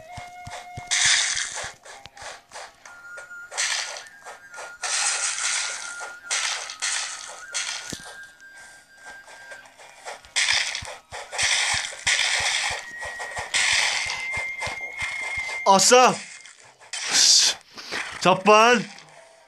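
Swords clash and slash in a game battle.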